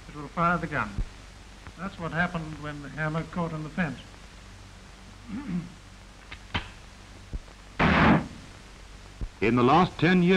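A rifle's bolt clicks and clacks as it is worked.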